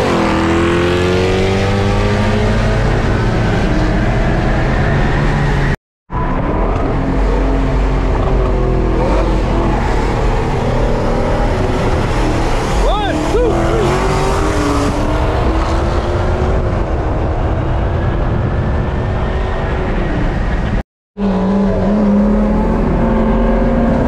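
Another car's engine roars close alongside.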